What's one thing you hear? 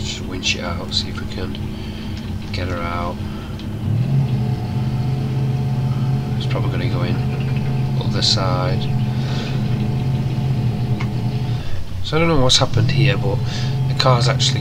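A truck engine labours and revs steadily, rising in pitch.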